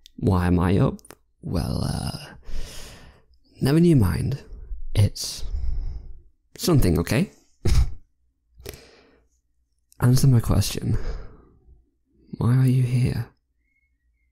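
A young man speaks softly and closely into a microphone, with pauses.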